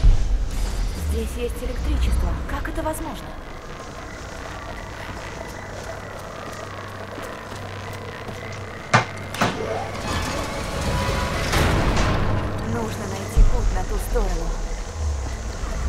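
Footsteps walk over a hard floor.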